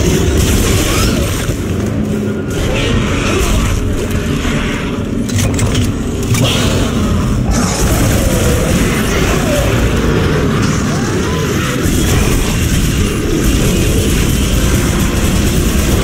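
A weapon fires with sharp bursts.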